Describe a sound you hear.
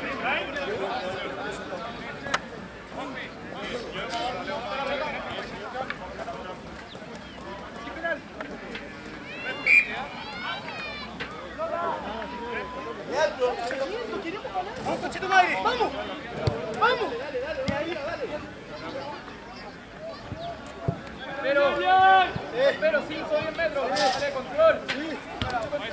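Spectators talk and shout from the sideline outdoors.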